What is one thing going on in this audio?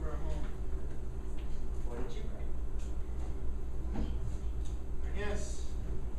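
A man speaks with pauses, heard from a distance in an echoing hall.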